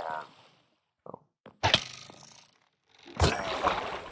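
Water splashes as something plunges in and bubbles.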